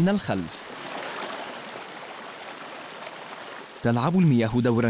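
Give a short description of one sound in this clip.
Water rushes and splashes over rocks.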